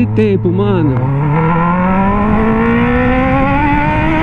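A motorcycle engine climbs steadily in pitch as the bike speeds up.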